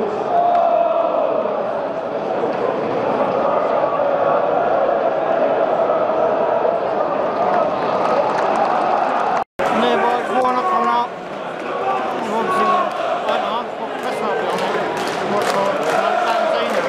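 A large stadium crowd chants and sings loudly.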